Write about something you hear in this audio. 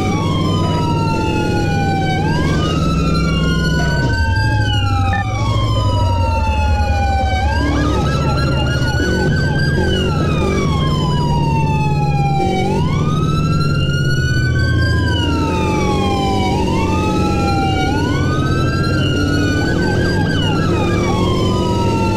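A siren wails up and down continuously.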